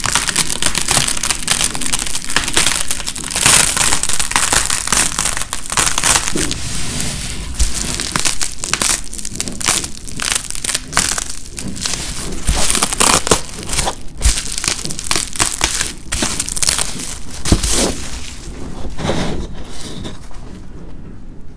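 Bubble wrap crinkles and crackles as it is peeled away.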